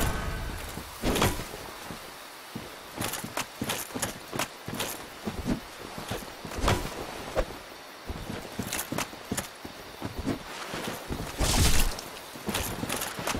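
Metal weapons clash and clang.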